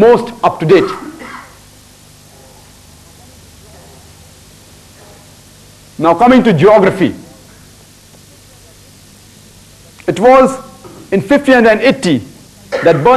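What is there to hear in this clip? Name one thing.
A young man speaks with animation into a close microphone, in bursts with pauses.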